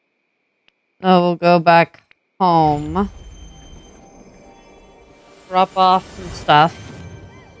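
A magical chime rings out in bright, shimmering notes.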